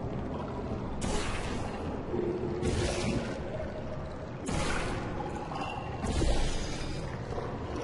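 A sci-fi gun fires with a sharp, hissing whoosh, several times.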